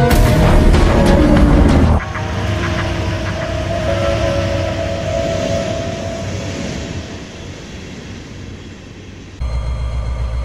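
Freight car wheels clatter along rails.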